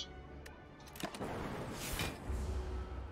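A sharp whooshing slash sounds.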